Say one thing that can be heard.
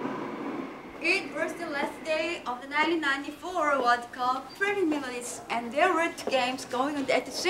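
A young woman reads aloud.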